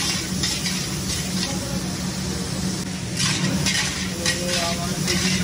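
Vegetables sizzle in a hot wok.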